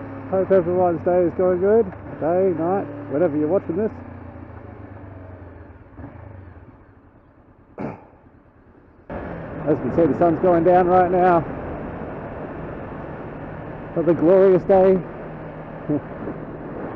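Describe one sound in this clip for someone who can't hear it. A motorcycle engine hums steadily while riding, quieting briefly before picking up again.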